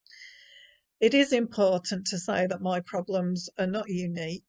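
A middle-aged woman speaks calmly through an online call.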